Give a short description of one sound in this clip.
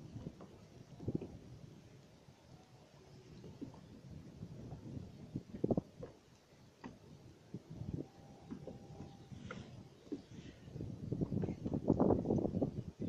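Small waves lap and slosh against the boat.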